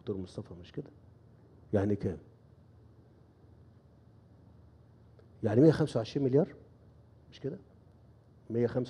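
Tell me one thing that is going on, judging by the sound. A middle-aged man speaks calmly and slowly through a microphone, with pauses between phrases.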